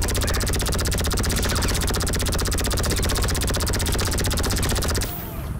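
A machine gun fires rapid, nonstop bursts.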